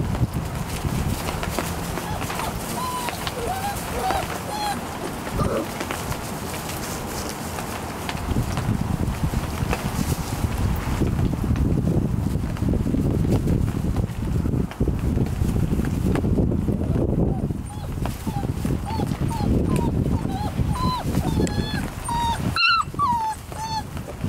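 Puppies whimper and yelp in high, short cries.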